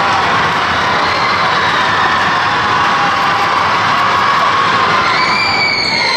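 A crowd cheers and shouts loudly in a large echoing gym.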